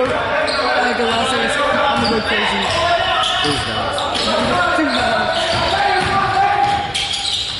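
A crowd of spectators talks and calls out in a large echoing gym.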